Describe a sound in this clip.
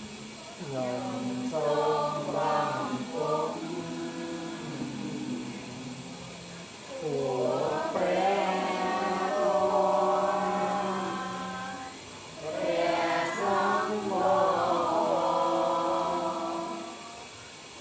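A group of men and women chant together in unison.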